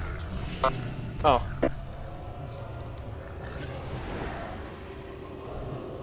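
Weapons clash and spells burst in a game battle.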